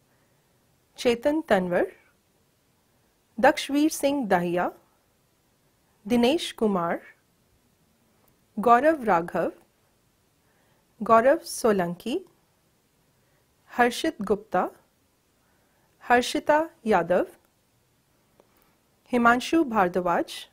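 A woman reads out names one by one through a microphone, with short pauses between them.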